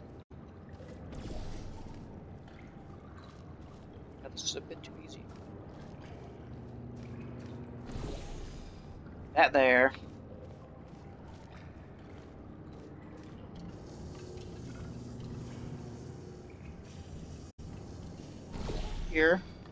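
A light bridge hums steadily.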